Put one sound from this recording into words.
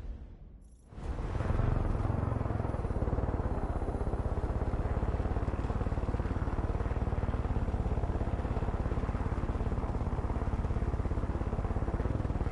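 A helicopter's rotor thumps loudly in a fast, steady beat.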